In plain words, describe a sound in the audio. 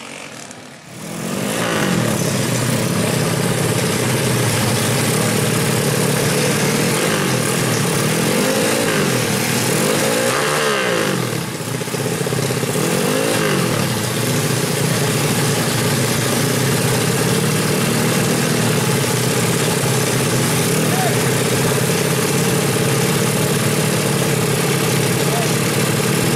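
A motorcycle engine idles loudly and revs up and down close by.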